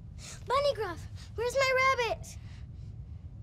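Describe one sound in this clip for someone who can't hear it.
A young girl calls out loudly in a high, pleading voice.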